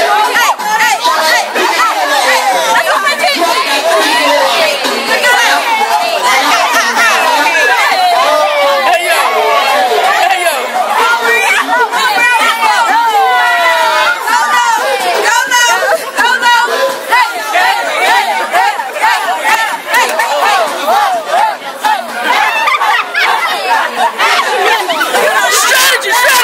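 A crowd of young women cheers, screams and laughs loudly outdoors.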